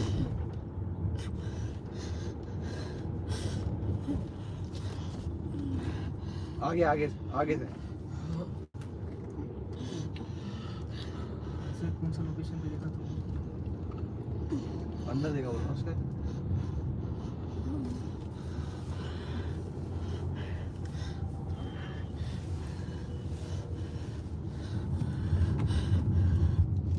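A car's engine and road noise rumble steadily from inside the car.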